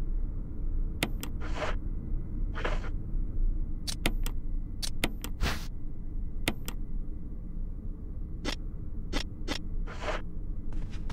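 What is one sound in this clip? Menu selections click and beep sharply.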